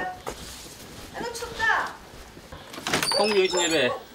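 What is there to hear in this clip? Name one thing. A wooden sliding door rattles open.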